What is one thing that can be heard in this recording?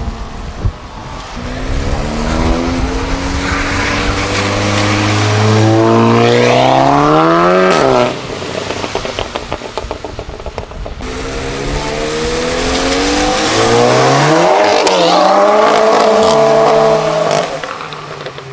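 A hatchback engine revs loudly and accelerates away, shifting gears.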